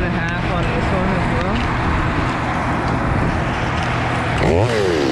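A chainsaw engine runs loudly close by.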